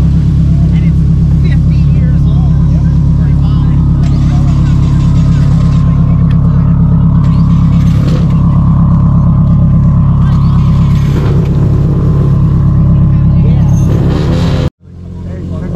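A car engine idles with a deep, throbbing exhaust rumble.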